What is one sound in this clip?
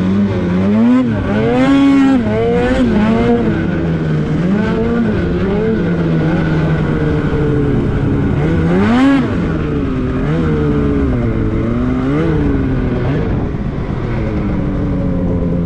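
A snowmobile engine drones close by and revs up and down repeatedly.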